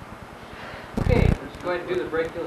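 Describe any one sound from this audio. A thump sounds as a man gets up from a mat.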